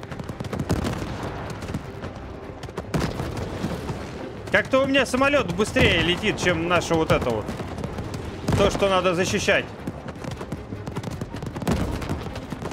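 Explosions boom in bursts.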